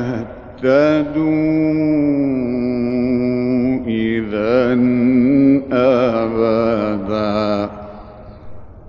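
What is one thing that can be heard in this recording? A man chants slowly in a long, melodic voice, heard through an old recording.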